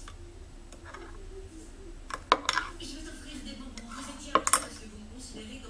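A spoon clinks against the side of a cup while stirring.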